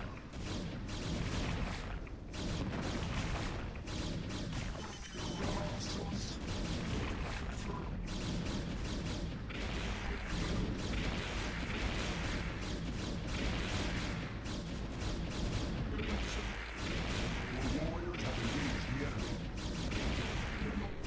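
Game units fire crackling energy blasts in rapid bursts.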